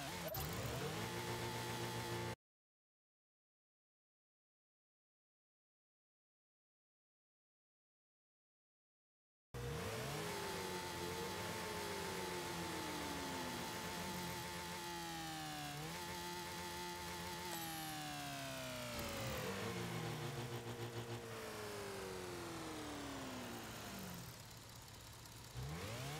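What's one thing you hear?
Car engines hum and rev, rising and falling in pitch.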